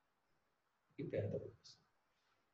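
A man reads a few words quietly.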